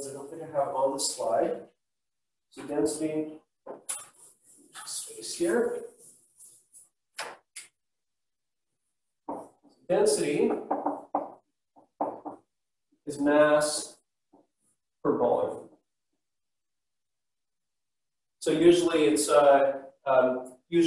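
A man lectures nearby, speaking calmly in bursts with pauses.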